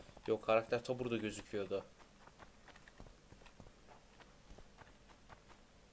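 Footsteps tread lightly on stone.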